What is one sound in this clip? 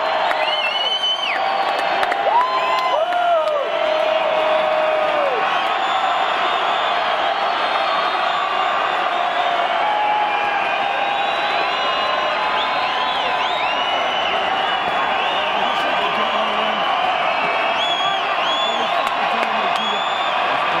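A large crowd cheers and shouts loudly in a big echoing arena.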